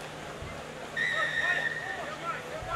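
A referee's whistle blows sharply once outdoors.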